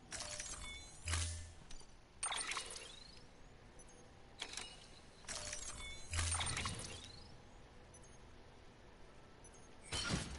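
Electronic menu chimes and whooshes sound in short bursts.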